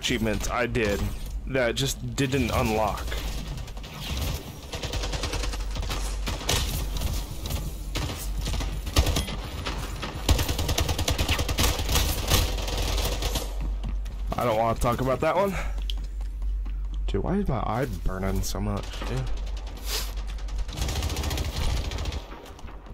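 Rifle gunfire crackles in rapid bursts.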